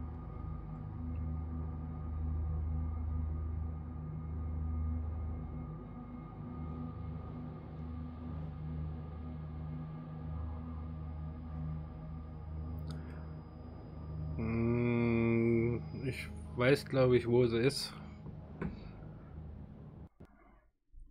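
A spaceship's engines hum with a low, steady drone.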